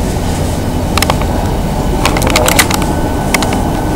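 Train wheels clack sharply over rail joints.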